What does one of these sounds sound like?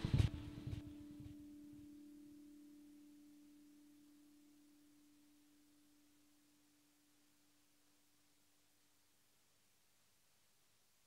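An electronic keyboard plays a sustained chord that slowly fades away.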